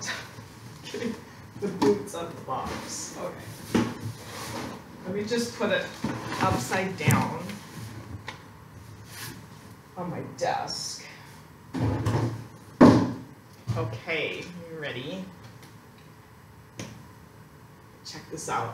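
Cardboard boxes rustle and thump as they are handled.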